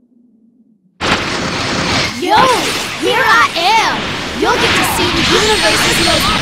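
Fighting game effects whoosh and blast loudly.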